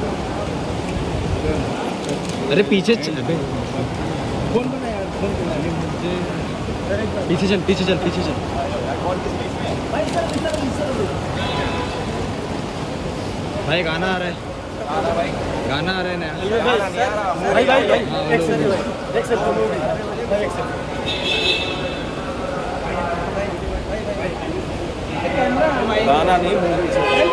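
A crowd of men chatters and calls out in a large echoing hall.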